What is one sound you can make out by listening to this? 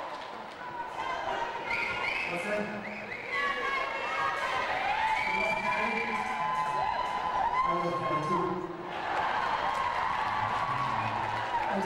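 A boy sings into a microphone.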